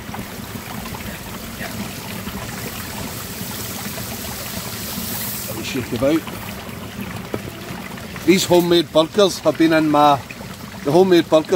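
Food sizzles in a frying pan.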